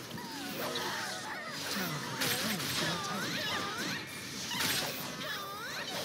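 Magic spells whoosh and burst in a fast battle.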